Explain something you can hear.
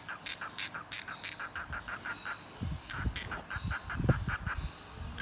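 A cockatiel chirps close by in short, quick, repeated notes.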